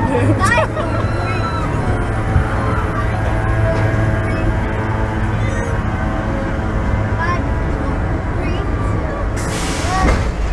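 A roller coaster train clanks steadily up a chain lift.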